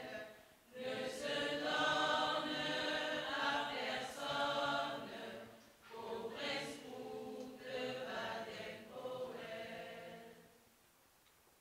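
A group of young women sing together.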